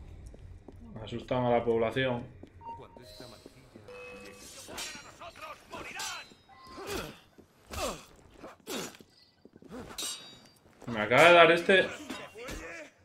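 A young man speaks loudly and with animation close to a microphone.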